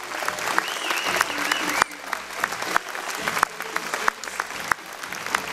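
A crowd claps in a large echoing hall.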